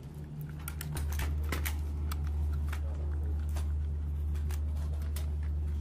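Cartridges click into a rifle magazine.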